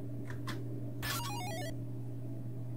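A retro video game gives a quick falling beeping chime.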